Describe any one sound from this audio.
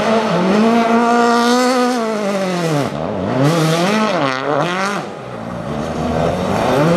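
A rally car engine revs hard, rising and falling in pitch as the car spins.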